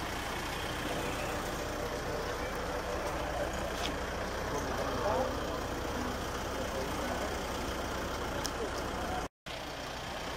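Several men strum acoustic guitars outdoors.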